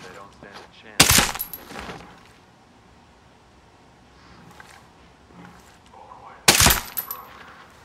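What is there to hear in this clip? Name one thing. A pistol fires a sharp single shot, twice.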